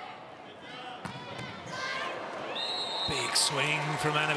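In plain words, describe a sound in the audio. A volleyball is struck hard several times during a rally.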